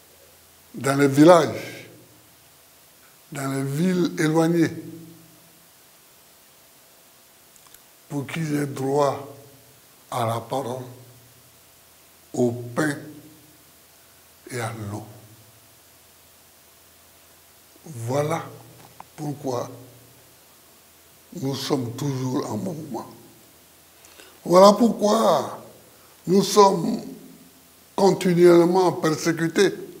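An elderly man speaks calmly and deliberately into a close microphone, with long pauses between phrases.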